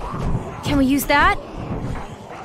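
A young girl asks a question.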